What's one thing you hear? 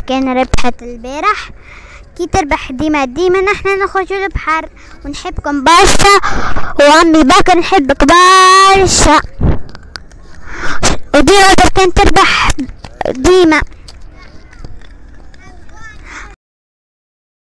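A young girl speaks and sings with animation close by.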